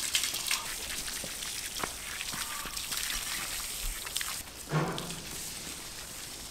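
Water from a garden hose splashes onto paving stones.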